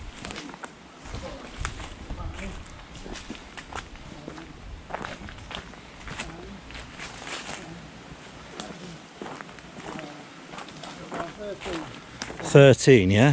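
Footsteps crunch and rustle through dry leaves.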